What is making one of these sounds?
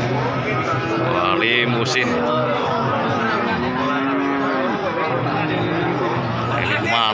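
Many men talk at once nearby in a busy outdoor crowd.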